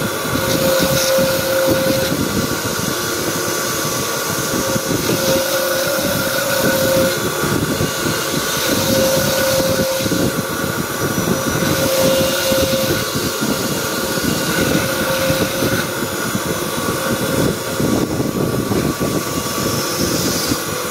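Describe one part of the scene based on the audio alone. An electric motor hums steadily as a polishing spindle spins.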